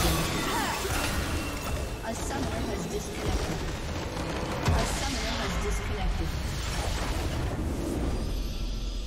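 Magic spell effects crackle and whoosh in a busy fight.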